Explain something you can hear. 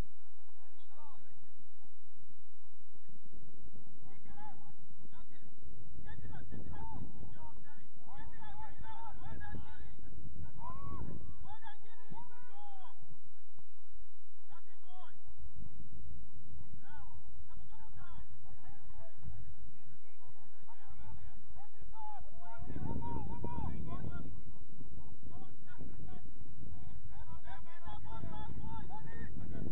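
Young men shout and call to each other across an open field, heard from a distance.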